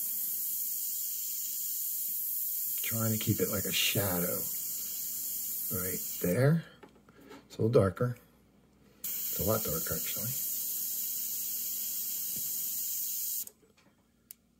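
An airbrush hisses steadily, pausing briefly before hissing again.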